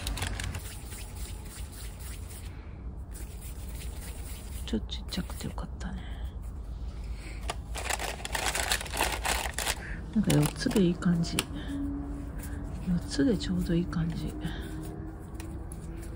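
Hands softly press and roll dough.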